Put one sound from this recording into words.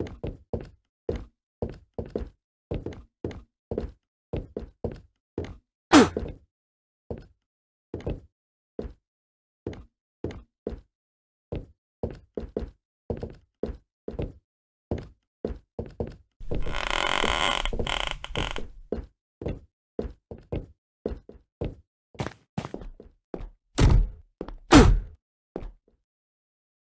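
Footsteps thud quickly on wooden floorboards.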